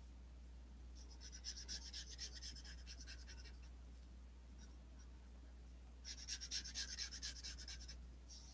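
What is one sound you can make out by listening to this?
A marker pen scratches and squeaks across paper in quick strokes.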